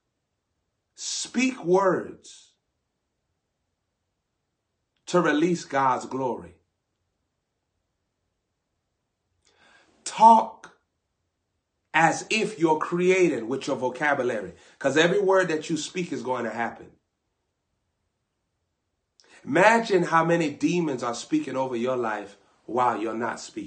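A young man speaks close to the microphone with animation, in short bursts between pauses.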